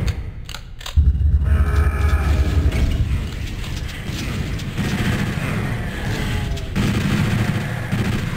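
A heavy game cannon fires with a roaring blast.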